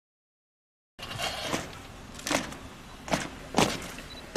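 Soldiers' boots tread in step on hard ground.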